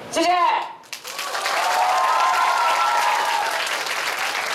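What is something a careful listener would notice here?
A crowd cheers and claps loudly in an echoing hall.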